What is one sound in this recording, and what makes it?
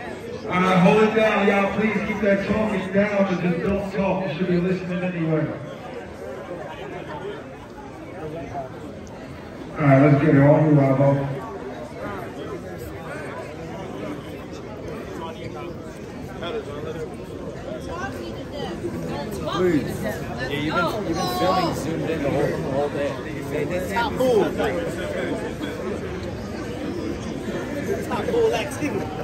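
A crowd murmurs and calls out in a large, noisy room.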